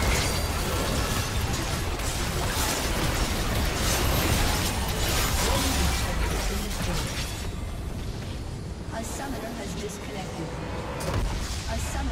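Spell effects crackle and boom in a fast fight.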